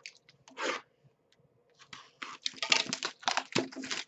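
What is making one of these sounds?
Cards rustle and slide against each other as they are handled.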